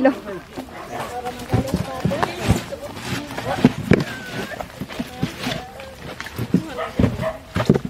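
Fish slap and rustle as hands sort them.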